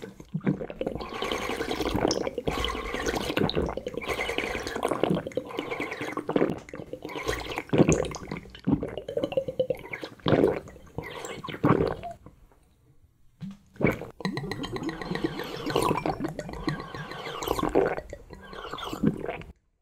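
A young man gulps and swallows loudly.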